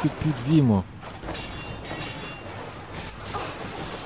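A blade whooshes through the air.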